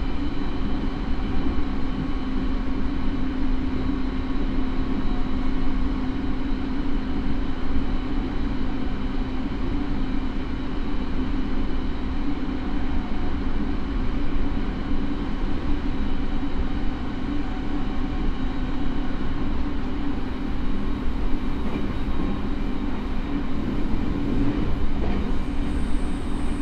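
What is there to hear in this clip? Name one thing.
A train's motor hums with a steady low whine.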